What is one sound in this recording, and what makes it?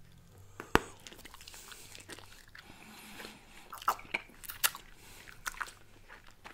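A man chews gum with wet smacking sounds close to a microphone.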